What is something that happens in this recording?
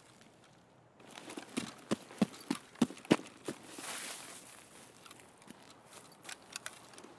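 Footsteps rustle through tall grass and bushes.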